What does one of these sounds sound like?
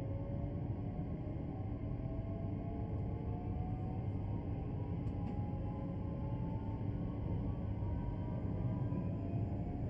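Train wheels rumble steadily on the rails.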